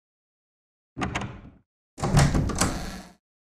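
A wooden door creaks slowly open.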